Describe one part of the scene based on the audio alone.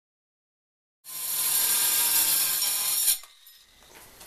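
A power saw whines as it cuts.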